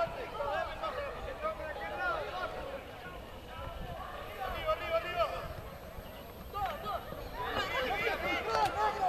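Young men shout and call out to each other across an open field.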